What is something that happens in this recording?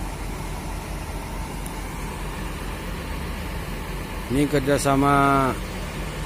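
A bus engine idles with a low steady rumble.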